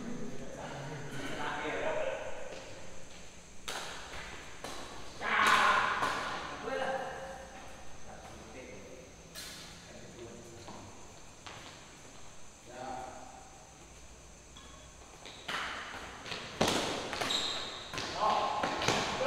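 Men shout and talk with animation across the court.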